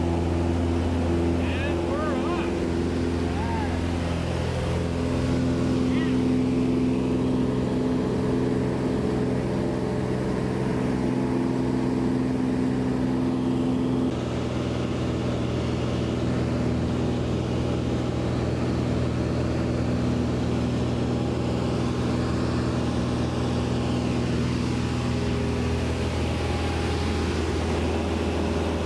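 Wind rushes past the plane.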